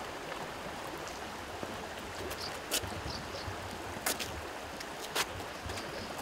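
Shoes scuff and step on paving stones outdoors.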